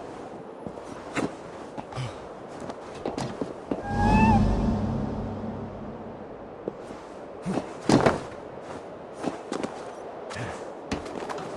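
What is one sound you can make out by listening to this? Footsteps and scrambling sound as a figure climbs over stone.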